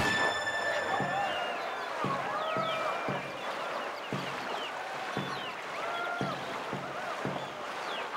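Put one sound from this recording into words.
Paddle strokes splash through water in a steady rhythm.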